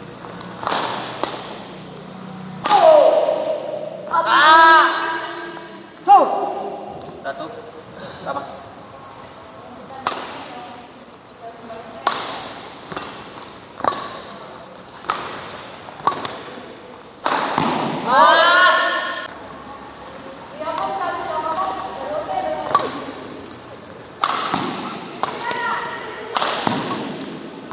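Rackets strike a shuttlecock back and forth with sharp pops in an echoing hall.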